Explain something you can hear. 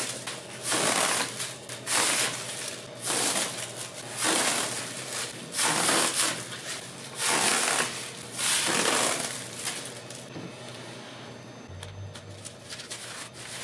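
Packing straw rustles and crinkles in loud bursts as it is handled.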